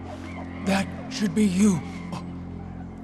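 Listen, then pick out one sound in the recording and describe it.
A deep male voice speaks slowly and gravely.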